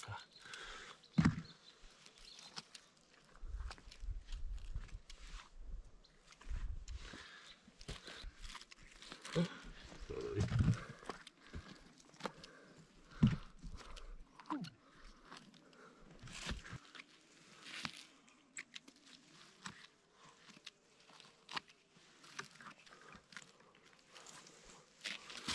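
A blade scrapes and digs into dry, crackling soil.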